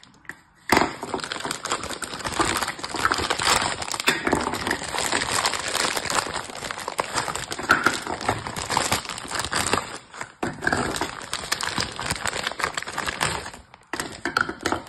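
A plastic bag crinkles and rustles loudly close by.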